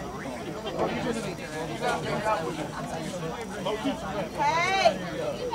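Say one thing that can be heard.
A crowd of spectators nearby chatters and calls out.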